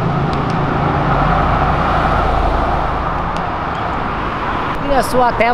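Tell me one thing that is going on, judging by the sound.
An engine rumbles as an SUV drives past on a road.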